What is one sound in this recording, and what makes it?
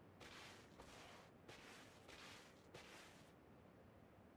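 Footsteps thud on a hard floor indoors.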